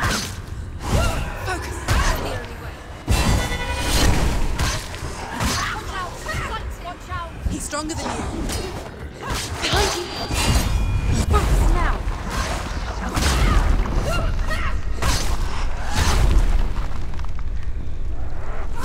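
A sword slashes and clashes in a fast fight.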